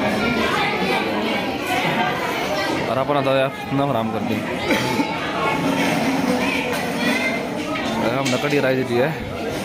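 Many people chatter in a busy room with a hubbub of voices.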